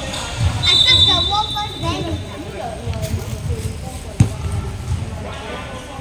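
Children shout and chatter in a large echoing hall.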